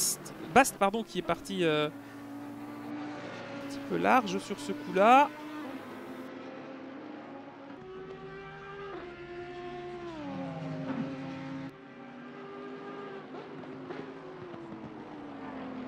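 A racing car engine roars, rising and falling in pitch as the car shifts gears.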